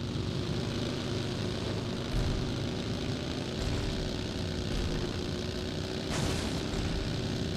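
A buggy's engine roars steadily as it drives over rough ground.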